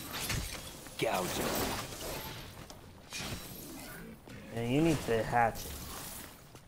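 A young man talks into a nearby microphone.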